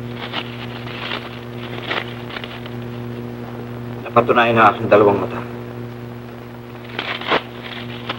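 Paper rustles in a man's hands.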